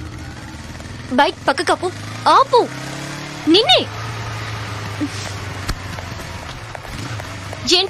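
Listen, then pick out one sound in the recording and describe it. A motorbike engine hums as it rides past.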